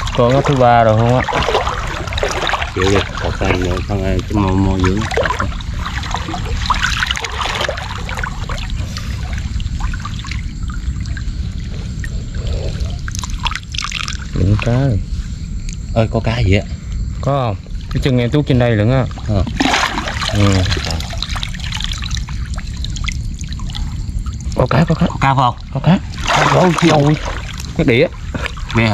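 Water splashes and swirls as a man wades through it.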